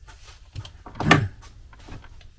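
A tape measure snaps back into its case.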